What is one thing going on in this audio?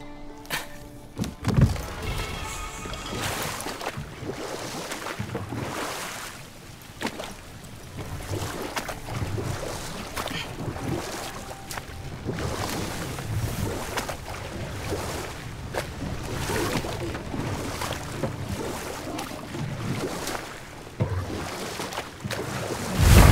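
Oars splash rhythmically through water.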